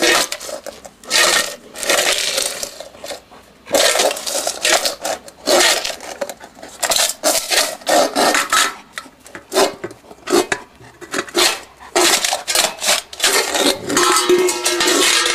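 A dog laps and slurps noisily from a metal bowl.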